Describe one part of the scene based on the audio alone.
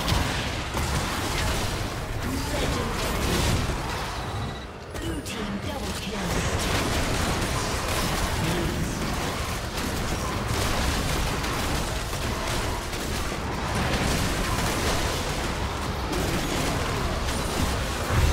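Spell blasts and hits from a video game battle crackle and boom.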